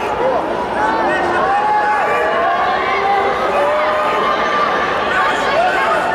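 A crowd of spectators shouts in a large hall.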